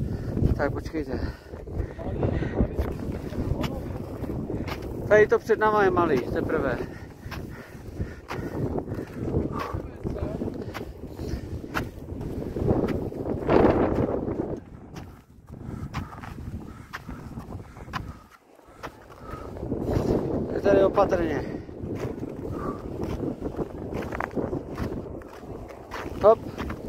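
Boots crunch steadily through snow.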